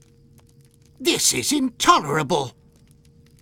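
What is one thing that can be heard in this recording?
A man speaks briefly with animation, close to a microphone.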